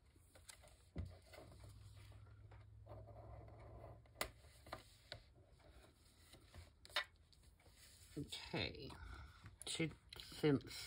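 Paper rustles and slides.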